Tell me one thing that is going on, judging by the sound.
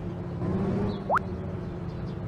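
A short whoosh sweeps upward.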